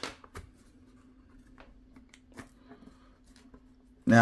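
Plastic wrap crinkles as fingers peel it off.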